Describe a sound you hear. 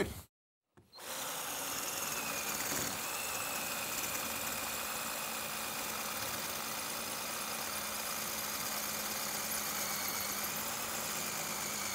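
A power drill whirs steadily as it bores into stone.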